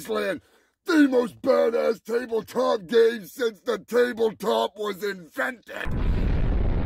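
A man speaks in a deep, growling voice with animation.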